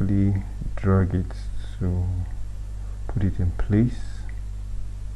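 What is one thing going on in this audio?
A young man speaks calmly into a nearby microphone.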